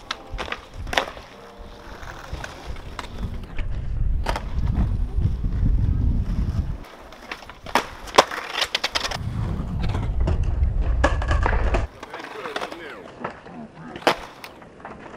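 A skateboard deck snaps and clacks on the ground.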